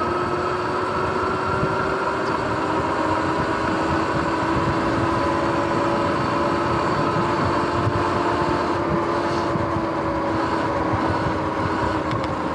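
An electric motor whines steadily.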